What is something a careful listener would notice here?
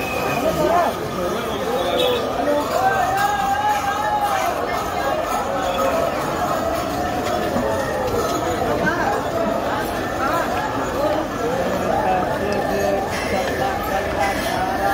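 A crowd of men and women talk and call out all around, close by.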